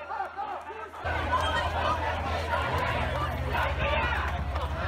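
A crowd murmurs and calls out outdoors.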